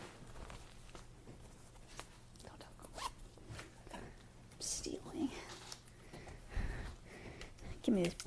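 Fabric rustles as a young woman handles a jacket.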